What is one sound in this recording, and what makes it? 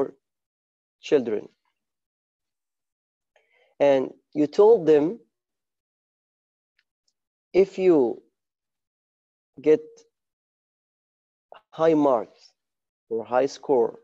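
A man speaks calmly in short phrases with pauses, heard through an online call.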